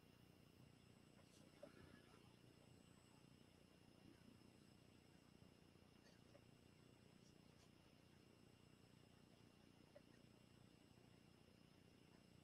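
A paintbrush scrapes softly across a surface.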